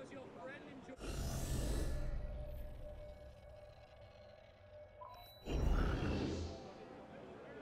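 A deep rushing whoosh swells and fades as a map zooms in and out.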